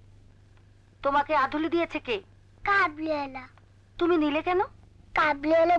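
A middle-aged woman speaks sternly nearby.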